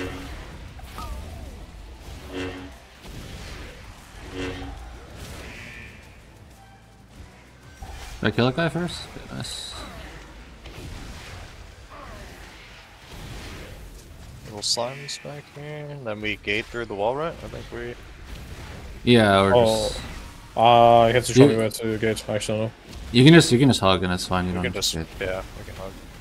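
Magic spells crackle and burst with fiery whooshes.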